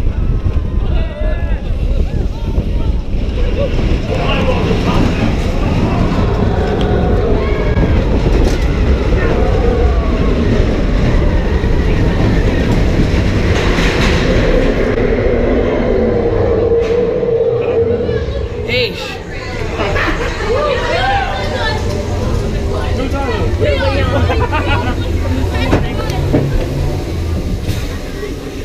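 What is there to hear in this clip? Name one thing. A roller coaster car rumbles and clatters along its track.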